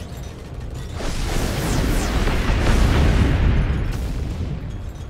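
A game robot's weapon fires with a rushing blast.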